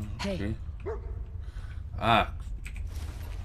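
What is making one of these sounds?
A dog barks playfully.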